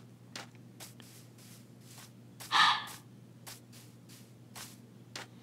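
Footsteps tread softly on grass and sand.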